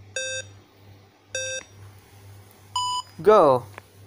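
Short electronic beeps count down, the last one higher.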